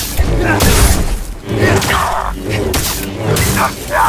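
Blaster shots crackle and zap.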